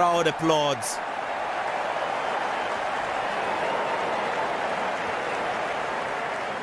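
A crowd cheers and roars in a large stadium.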